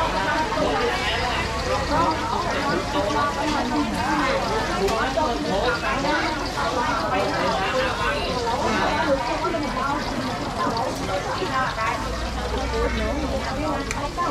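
A busy crowd chatters in the background.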